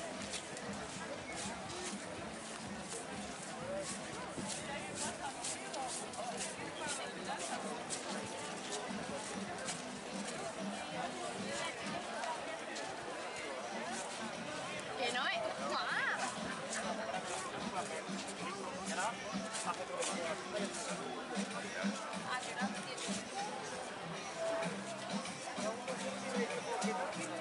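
Footsteps tap on paving stones close by.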